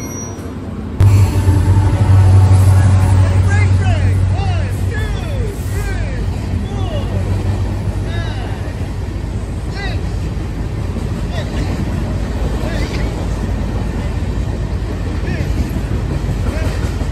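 A freight train rolls past with wheels clacking and rumbling on the rails.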